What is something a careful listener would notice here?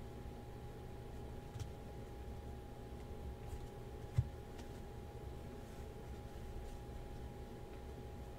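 Trading cards rustle and click as hands sort through them.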